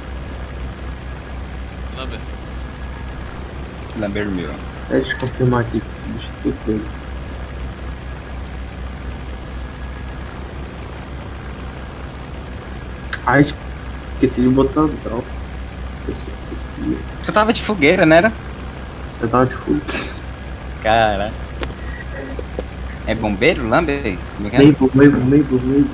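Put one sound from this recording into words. A propeller plane drones steadily.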